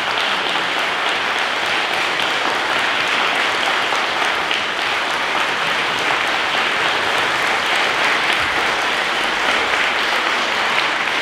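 A man claps his hands.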